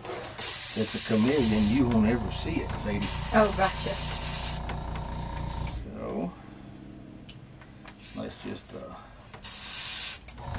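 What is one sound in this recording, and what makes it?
An airbrush hisses in short bursts.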